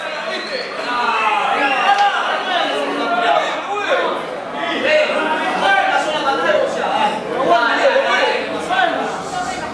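A crowd of men shout and cheer loudly.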